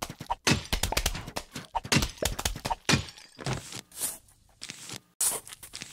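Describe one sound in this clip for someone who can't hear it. Clay pots shatter with sharp cracks.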